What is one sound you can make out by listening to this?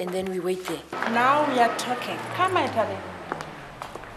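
A young woman speaks expressively close by.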